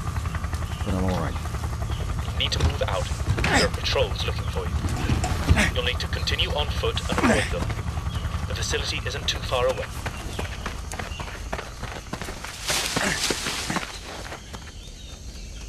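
A helicopter's rotor thuds and its engine drones close by.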